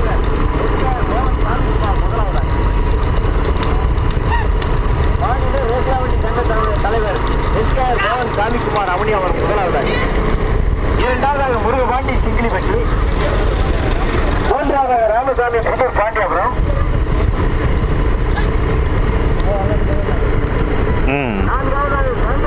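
Cart wheels rumble along a paved road.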